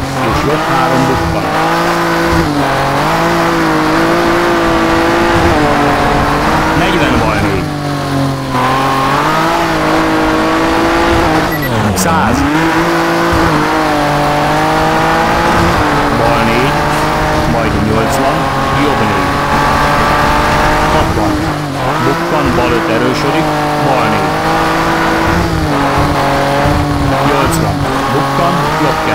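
A rally car engine roars, revving up and dropping with each gear change.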